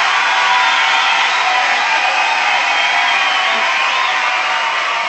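A rock band plays loud music with drums and electric guitars.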